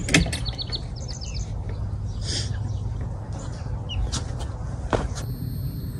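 A wooden door creaks and knocks as it is pushed.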